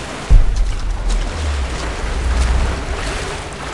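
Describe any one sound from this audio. A stream of water pours down and splatters.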